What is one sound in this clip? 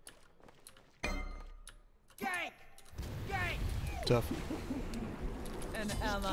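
Game spell effects burst and whoosh.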